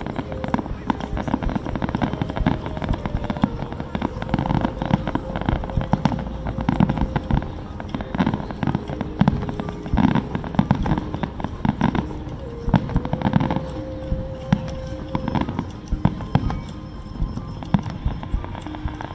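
Fireworks boom and crackle over and over.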